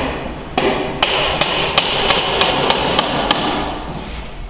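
A hammer taps sharply on wood, in quick, regular blows.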